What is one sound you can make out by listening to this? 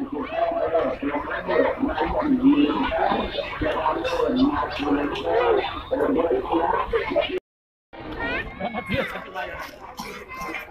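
A crowd of people chatters loudly outdoors.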